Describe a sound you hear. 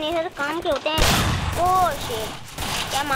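Gunshots fire in a rapid burst.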